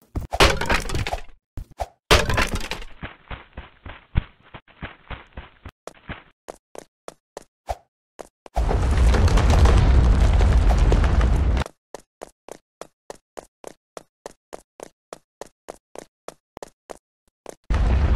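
Quick footsteps patter steadily as a game character runs.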